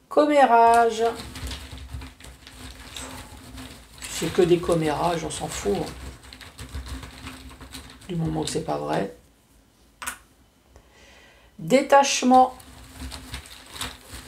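A cloth bag rustles as a hand rummages inside it.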